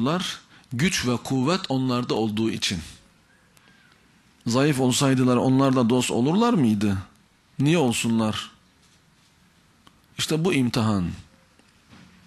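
A man speaks forcefully into a microphone, pausing between phrases.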